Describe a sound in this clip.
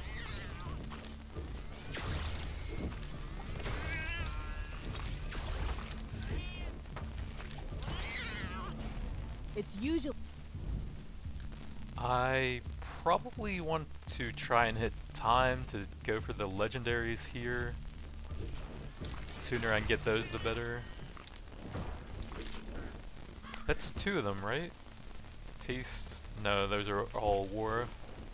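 Blades slash and hits land in quick bursts of fighting.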